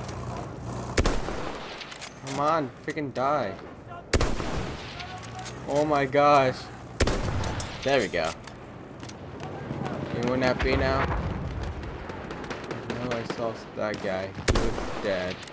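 Rifle shots crack one at a time, with pauses between them.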